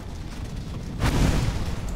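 A flame crackles and whooshes in a burst.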